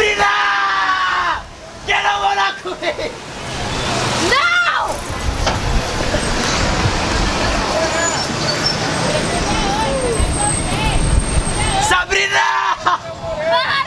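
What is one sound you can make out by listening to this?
A young man calls out loudly nearby.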